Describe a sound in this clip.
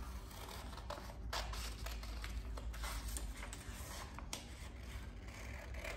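A sheet of stiff paper rustles as it is lifted away.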